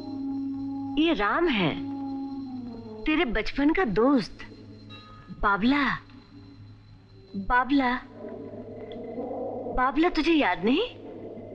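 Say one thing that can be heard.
A woman speaks emotionally and close by, in short bursts.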